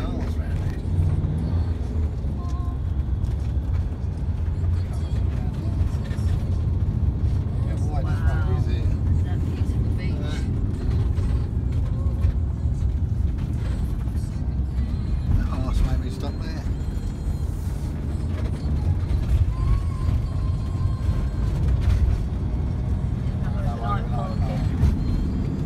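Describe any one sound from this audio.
Wind rumbles and buffets against the microphone outdoors.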